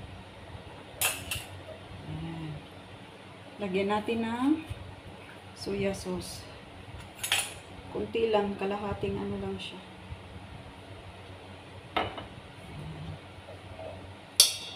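A metal spoon clinks against a metal bowl.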